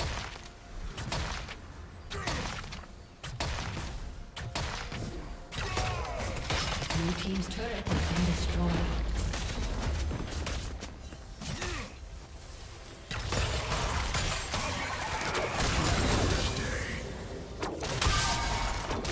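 Game fighting sound effects clash and burst rapidly.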